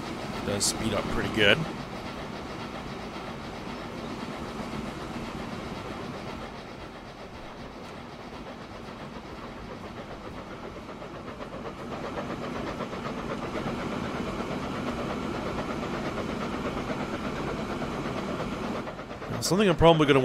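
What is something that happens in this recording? A steam locomotive chugs steadily along the tracks.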